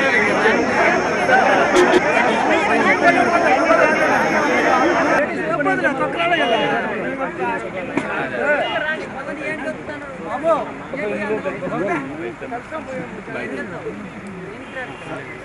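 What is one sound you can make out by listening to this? A crowd of men and women chatter excitedly close by.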